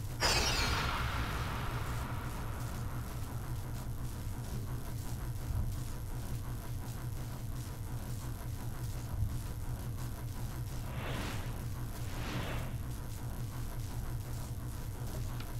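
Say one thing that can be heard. A sparking cable crackles and hums with electricity.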